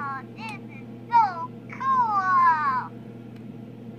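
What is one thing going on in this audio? An older woman speaks in a high, playful sing-song voice close by.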